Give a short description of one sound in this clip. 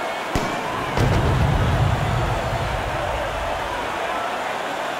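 Stage fireworks burst with a deep rumbling boom.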